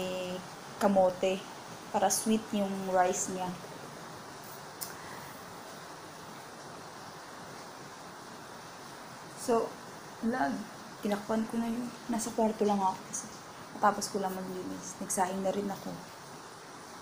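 A young woman sings close to a microphone.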